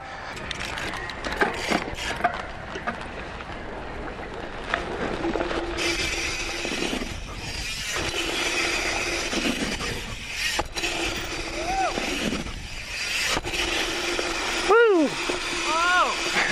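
Bicycle tyres roll and crunch over a dirt track.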